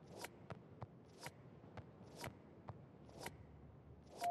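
Short electronic menu clicks tick at a steady pace.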